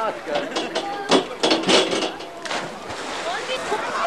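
Water splashes loudly as a diver hits a pool.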